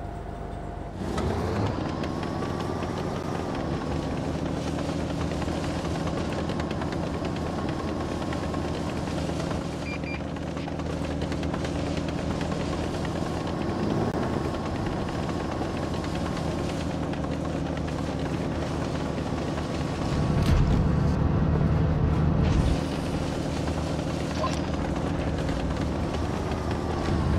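A heavy tank engine rumbles and whines steadily as the tank drives.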